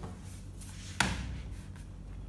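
A hardcover book is flipped open and lands flat with a soft thump.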